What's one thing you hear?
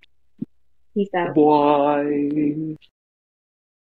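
A young man calls out a drawn-out goodbye over an online call.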